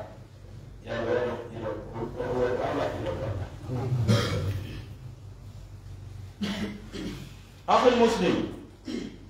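An elderly man reads aloud into a microphone, heard through a loudspeaker.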